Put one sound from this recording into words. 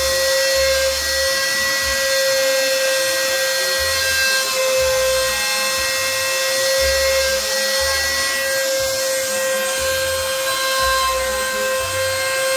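A machine's motor whines steadily with a high hum.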